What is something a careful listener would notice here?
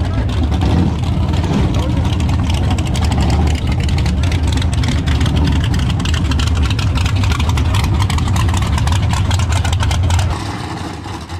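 Tyres spin and screech.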